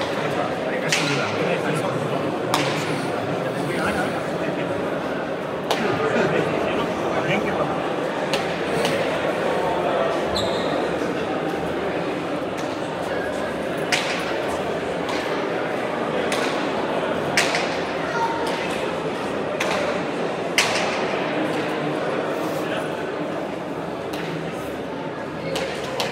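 A ball smacks hard against a wall, echoing through a large hall.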